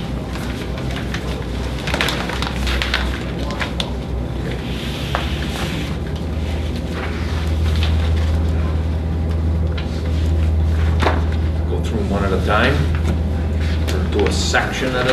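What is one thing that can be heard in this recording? A man speaks calmly, heard from across the room.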